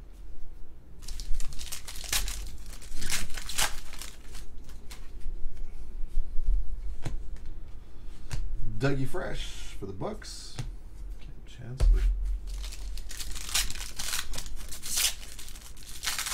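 A foil pack crinkles and tears open.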